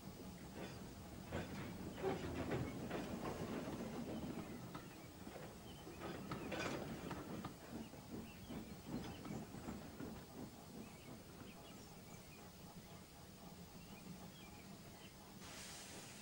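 Train wheels rumble and clatter along a track.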